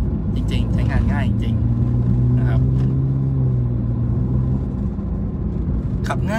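A man speaks casually, close to the microphone.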